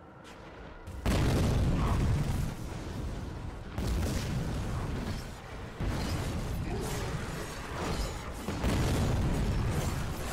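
Magic blasts roar and explode in a battle.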